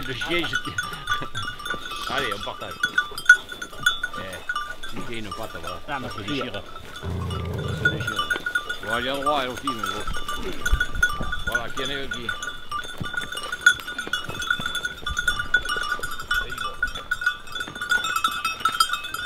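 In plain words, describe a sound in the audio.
A pack of hounds whines and howls close by.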